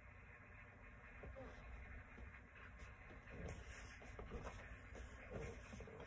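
A person shuffles and thuds softly on a carpeted floor.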